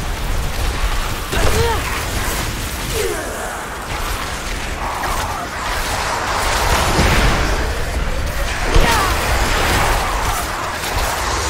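Magic spells crackle and whoosh in bursts.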